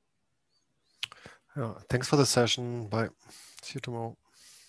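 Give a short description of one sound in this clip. A second man speaks with animation through an online call.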